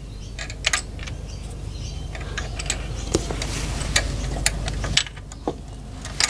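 A wrench clicks and clinks against metal engine parts.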